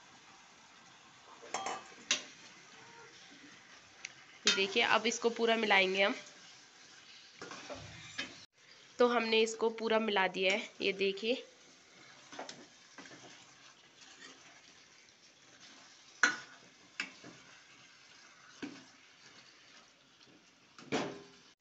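Meat sizzles steadily in a hot pan.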